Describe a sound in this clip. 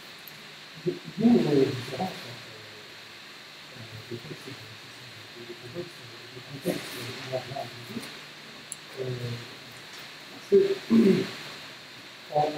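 An older man speaks haltingly, with pauses, in a room with some echo.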